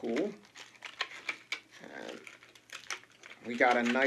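Small plastic parts click and rustle in a man's hands.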